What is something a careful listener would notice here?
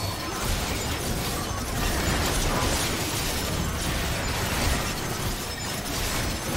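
Game battle effects crackle and boom.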